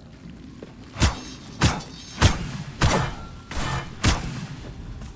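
Swords clash and ring sharply several times.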